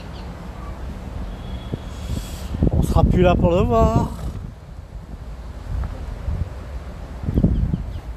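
Wind blows in gusts outdoors, rumbling against the microphone.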